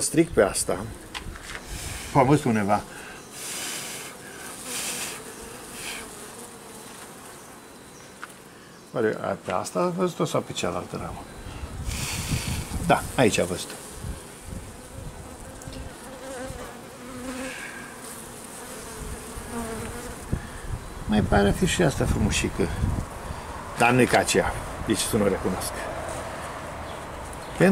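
Bees buzz in a steady, low hum close by.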